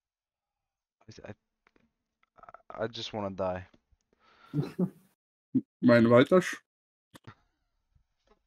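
A young man speaks close to a microphone, with emotion.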